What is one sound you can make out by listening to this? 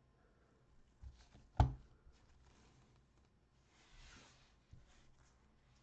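Plastic card holders click against each other as they are handled.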